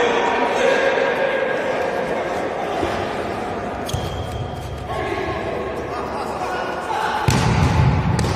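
A ball thumps as it is kicked.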